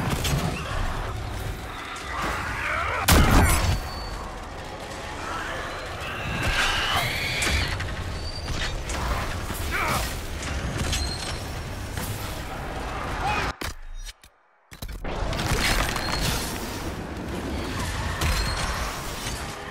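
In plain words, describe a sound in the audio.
Magic spells crackle and burst during a fight.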